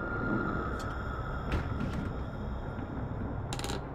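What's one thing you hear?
A glass cabinet door creaks open.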